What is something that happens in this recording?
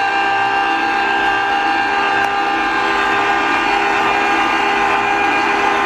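A juicer motor hums steadily.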